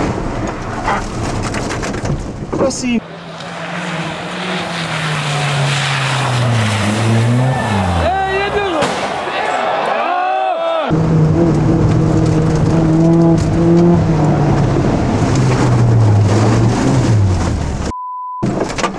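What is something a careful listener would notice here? A car engine revs hard and rises and falls in pitch as the car speeds along.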